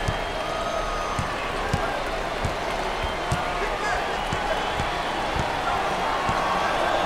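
Sneakers squeak on the court.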